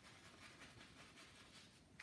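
A brush scrapes softly on canvas.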